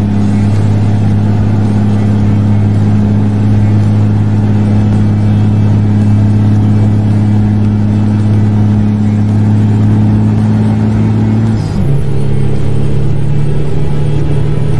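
A truck engine drones steadily from inside the cab, then shifts gear and changes pitch.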